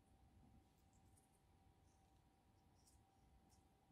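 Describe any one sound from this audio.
A ribbon rustles as it is tied.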